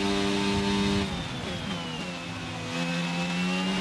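A racing car engine drops in pitch and quiets as the car slows down.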